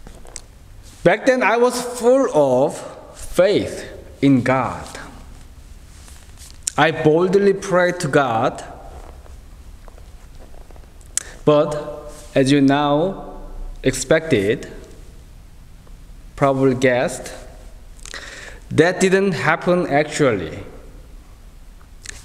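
A man speaks calmly into a microphone in pauses, in a room with a slight echo.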